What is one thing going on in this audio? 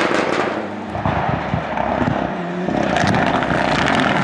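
A rally car engine revs hard as a second car approaches.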